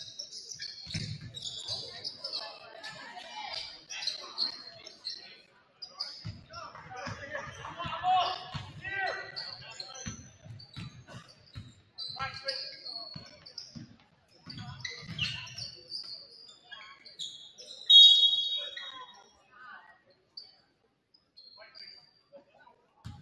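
Sneakers squeak sharply on a hardwood court in an echoing gym.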